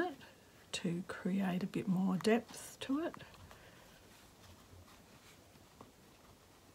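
Thread is pulled softly through fabric.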